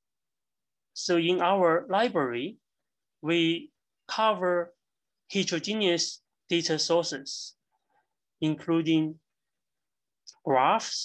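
A middle-aged man speaks calmly and steadily into a close microphone, with short pauses.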